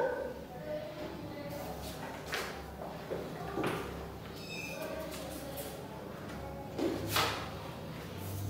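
Paper rustles as a woman handles it.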